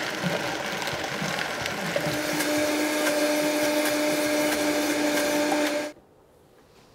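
A blender whirs loudly and then stops.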